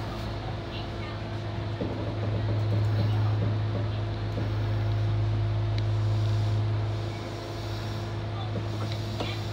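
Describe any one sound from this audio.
A train's electric motor hums steadily as the train pulls slowly out.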